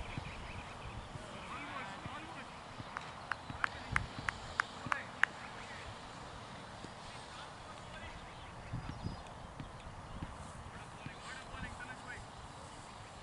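Men call out to each other across an open field, some distance away.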